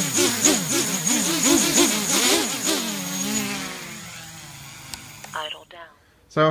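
Small electric motors whir at high speed and then spin down.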